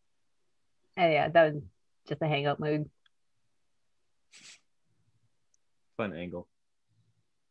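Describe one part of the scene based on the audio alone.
A man speaks in short phrases through an online call.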